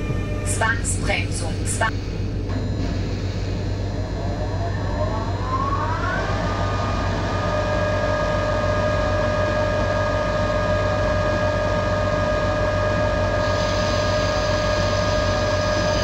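Train wheels rumble steadily along the rails.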